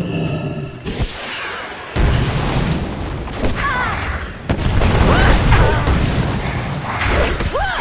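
Explosions boom as a war wagon burns.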